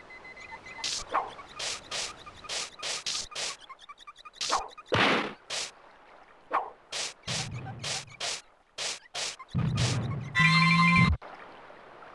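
A cartoon character spins around with quick whooshing swipes.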